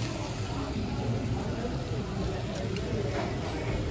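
Food sizzles on a hot stone plate.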